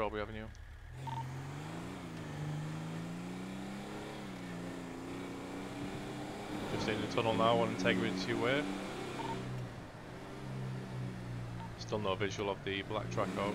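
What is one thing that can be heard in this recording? A car engine hums and revs as a car drives along.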